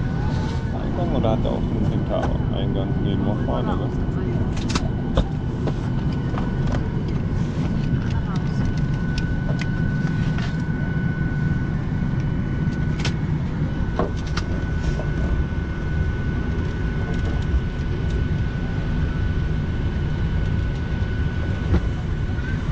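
A steady low hum of air fills an aircraft cabin.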